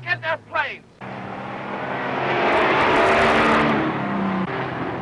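A vintage car's engine roars as the car pulls away.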